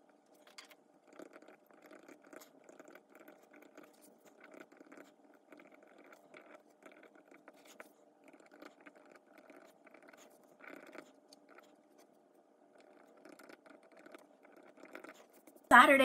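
A pen scratches softly on paper as it writes.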